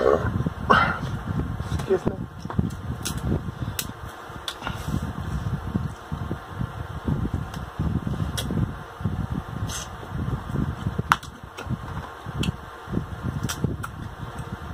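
Crab shells crack and snap as they are pulled apart close to the microphone.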